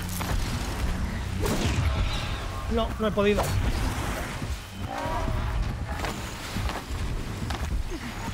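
Heavy blows thud and crash in a fight.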